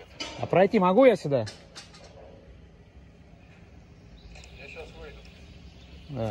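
A metal gate latch clicks open.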